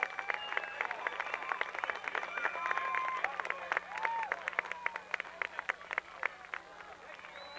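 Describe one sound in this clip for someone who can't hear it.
Hands clap in quick bursts.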